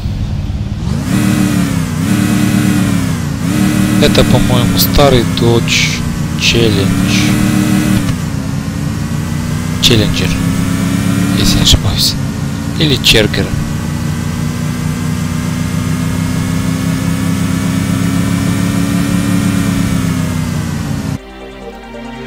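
A racing car engine revs hard and climbs through the gears.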